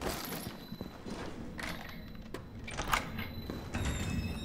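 A door handle clicks and the door opens.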